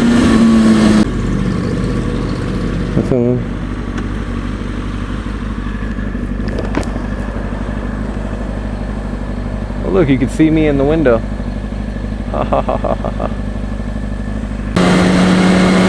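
A motorcycle engine idles at a stop.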